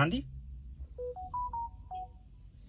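An electronic chime plays a short rising series of tones.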